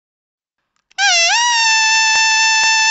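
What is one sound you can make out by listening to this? A toy party horn blows a long, steady, high tone.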